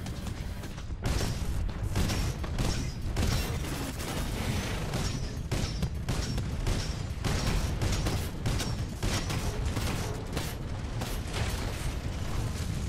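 Rapid heavy gunfire rattles in bursts.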